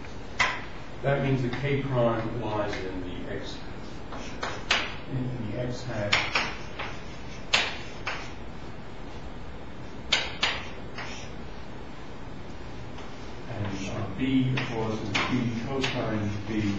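An elderly man lectures calmly, heard from across a room.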